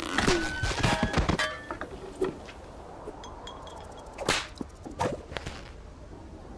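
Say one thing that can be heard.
A cartoonish male voice speaks in short, animated bursts.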